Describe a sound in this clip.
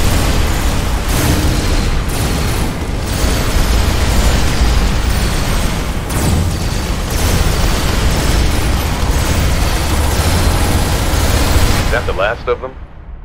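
Laser weapons fire and explosions blast loudly and continuously.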